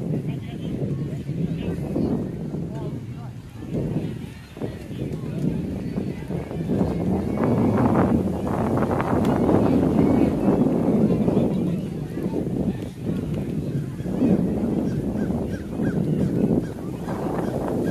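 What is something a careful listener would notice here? Wind blows across the microphone outdoors.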